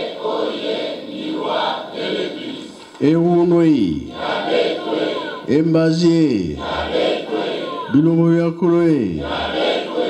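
A crowd of men and women sings and chants together outdoors.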